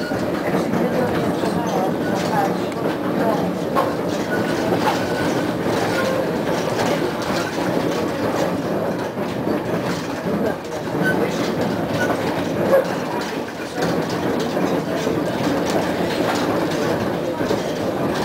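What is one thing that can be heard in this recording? A tram rumbles and rattles along the tracks.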